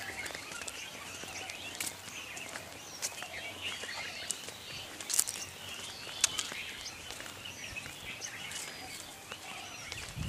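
Footsteps walk slowly on a paved path outdoors.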